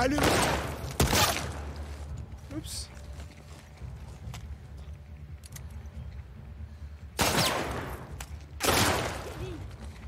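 Gunshots ring out loudly with an echo.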